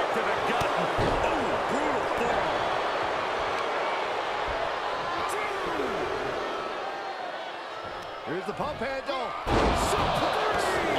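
Heavy bodies thud onto a wrestling ring's mat.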